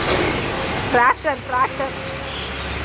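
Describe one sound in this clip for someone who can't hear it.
A young child calls out nearby.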